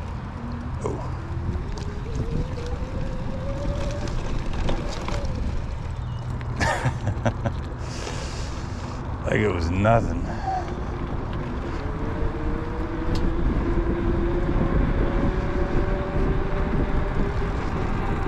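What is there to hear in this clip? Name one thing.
An electric bike motor whines, rising in pitch as it speeds up.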